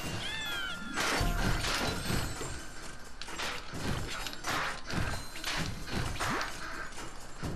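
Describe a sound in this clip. Game enemies pop and burst when struck.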